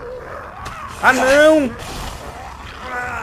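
A zombie groans and snarls.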